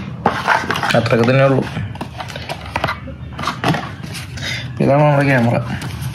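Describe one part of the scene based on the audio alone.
A plastic case clicks and clatters as it is handled.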